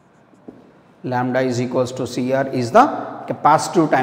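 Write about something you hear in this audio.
A young man speaks clearly and calmly, close by.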